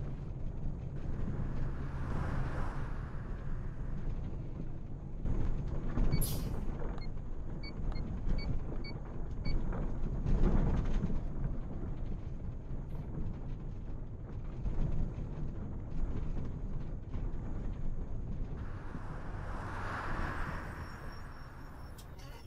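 A bus engine rumbles steadily as the bus drives along a road.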